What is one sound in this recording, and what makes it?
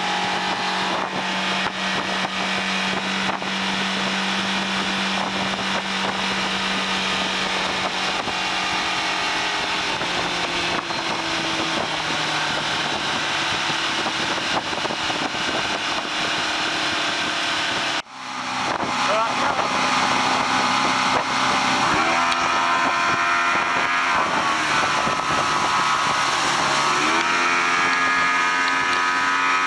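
An outboard motor roars steadily at high speed.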